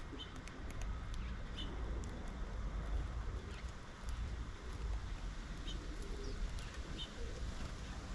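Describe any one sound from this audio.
Small birds chirp softly now and then nearby.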